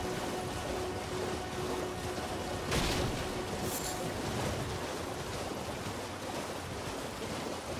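A horse gallops through shallow water, splashing steadily.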